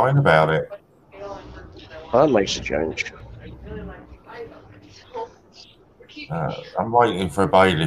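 A middle-aged man talks casually over an online call.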